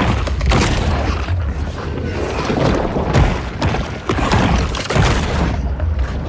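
A shark bites down with loud, crunching snaps.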